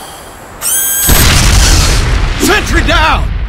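An explosion bursts with a loud, deep boom.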